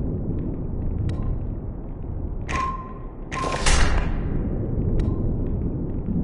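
Game menu blips sound as options are chosen.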